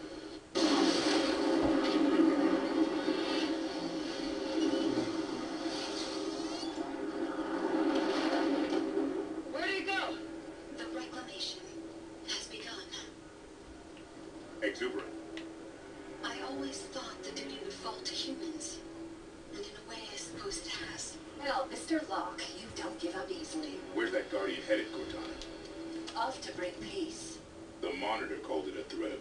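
Gunfire and explosions from a video game play through loudspeakers.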